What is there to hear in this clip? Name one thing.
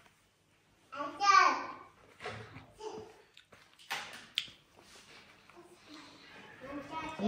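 A woman hums and murmurs while eating.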